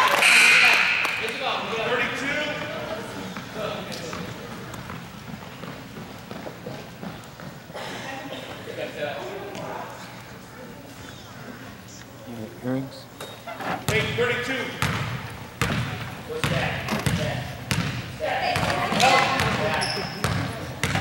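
Spectators chatter and cheer in an echoing gym.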